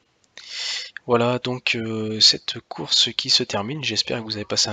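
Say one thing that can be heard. A young man talks animatedly into a microphone, close up.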